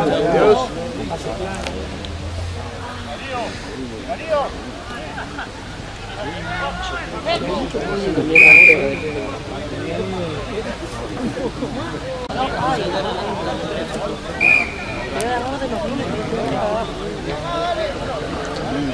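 Men shout and call out to each other outdoors across an open field.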